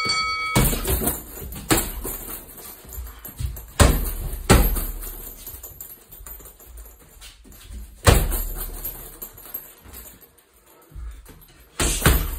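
A punching bag's chain rattles and creaks as the bag swings.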